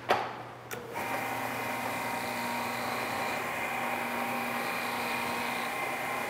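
A floor scrubbing machine hums and whirs steadily.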